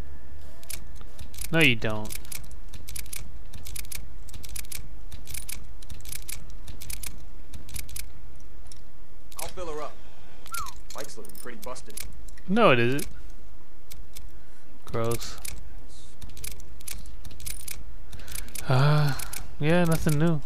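Menu selections tick and click in quick succession.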